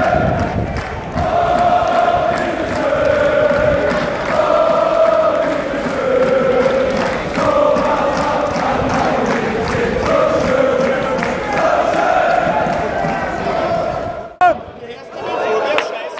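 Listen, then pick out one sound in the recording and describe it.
A large crowd of men and women sings a chant loudly in unison outdoors.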